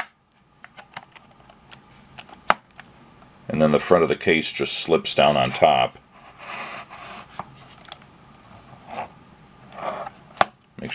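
Plastic buttons click as a finger presses them.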